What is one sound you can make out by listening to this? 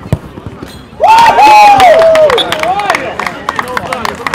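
Young men cheer loudly.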